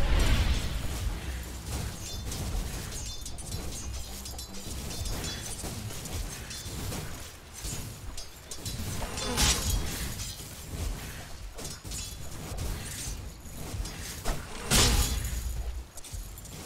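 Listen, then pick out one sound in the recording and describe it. Swords clash rapidly in a game battle.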